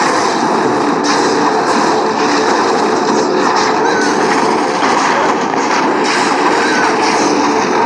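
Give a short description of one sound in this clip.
Game battle effects clash and rumble.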